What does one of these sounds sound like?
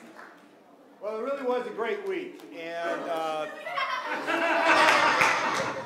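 A man speaks to the congregation through a microphone in a large hall.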